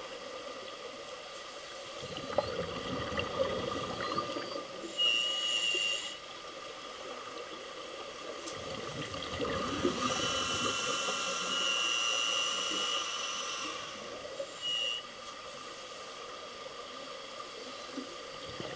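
Air bubbles rush and gurgle underwater from divers' regulators.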